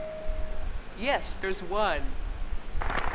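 A woman speaks brightly, heard through a game's sound.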